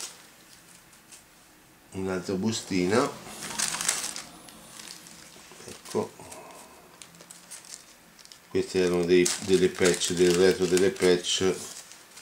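A small plastic bag crinkles in a man's hands.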